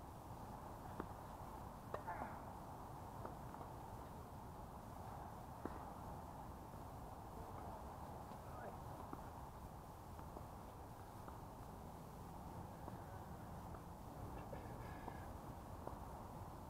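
Tennis balls are struck by rackets in the distance, with sharp pops.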